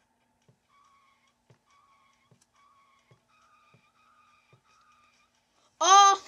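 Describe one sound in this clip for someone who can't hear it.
Short beeping tones play from a laptop speaker.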